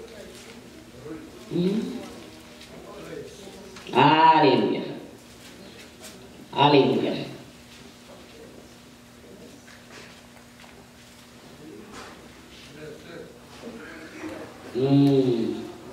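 A middle-aged woman reads aloud into a microphone, her voice rising in loud bursts.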